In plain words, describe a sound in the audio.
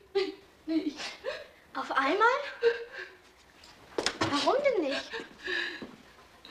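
A young girl speaks close by in an upset, pleading voice.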